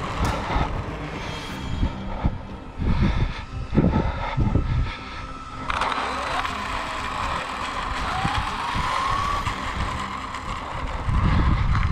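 Wind rumbles and buffets in gusts outdoors.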